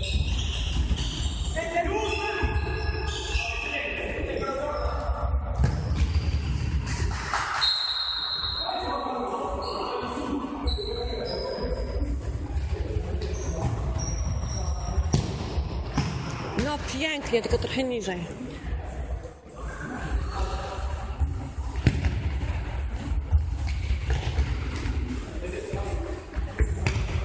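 A ball is kicked with dull thumps in a large echoing hall.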